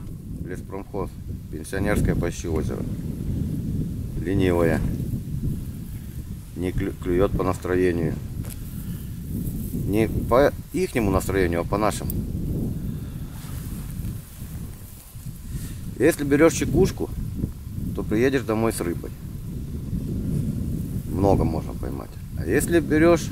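An elderly man speaks calmly close by, outdoors.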